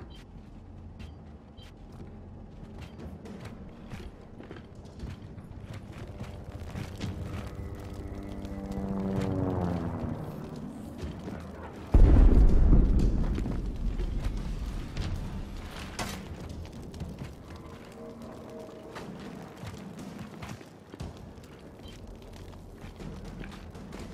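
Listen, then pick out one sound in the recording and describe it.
Heavy armoured footsteps thud along a floor.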